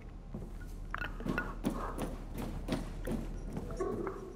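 Footsteps clang on metal stairs.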